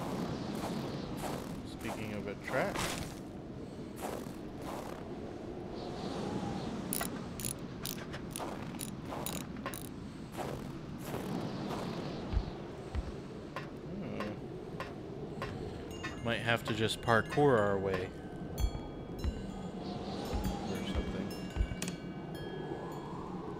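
Wind blows steadily outdoors in a snowstorm.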